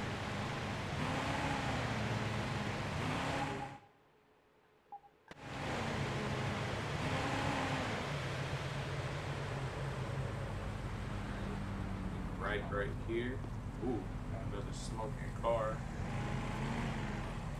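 A siren wails with a rising and falling tone.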